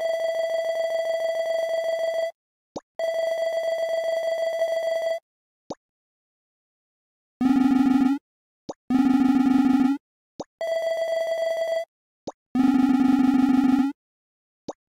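Rapid high electronic beeps chatter in bursts, like text being typed out in a game.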